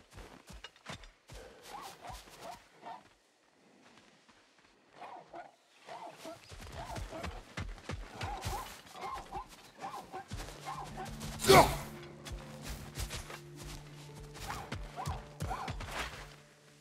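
Heavy footsteps crunch over dirt and stone.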